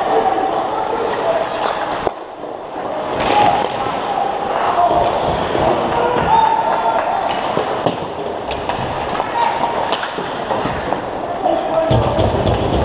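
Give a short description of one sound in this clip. Players shout to each other across an echoing rink.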